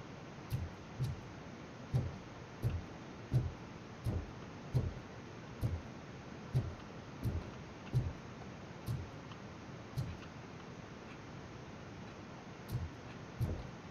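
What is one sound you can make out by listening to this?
Footsteps thud slowly and steadily on a wooden floor.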